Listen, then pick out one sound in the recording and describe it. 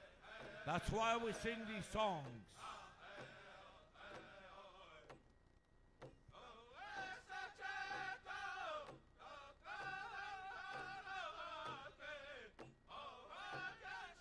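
A group of men sings loudly in a large echoing hall.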